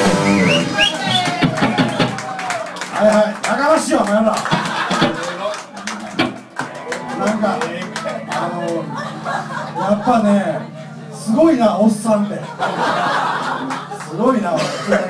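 A young man sings and shouts into a microphone.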